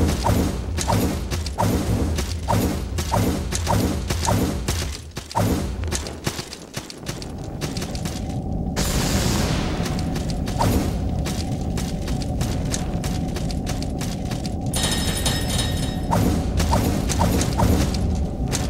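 A sword swishes through the air in quick repeated strikes.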